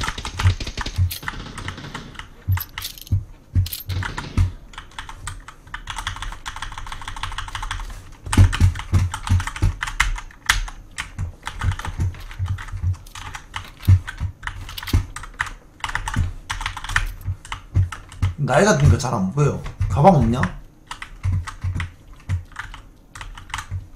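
Footsteps thud in a steady quick rhythm.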